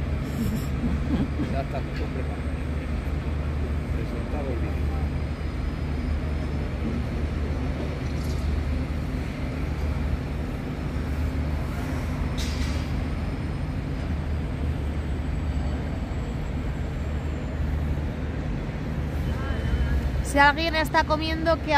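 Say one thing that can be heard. A heavy engine rumbles steadily outdoors.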